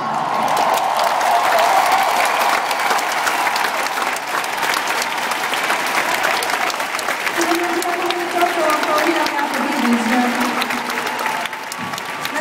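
A large crowd cheers and shouts in a vast open stadium.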